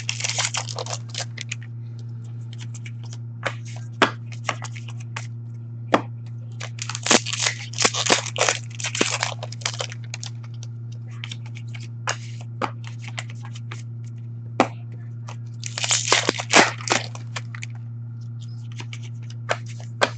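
Cards rustle and flick as hands shuffle and sort them.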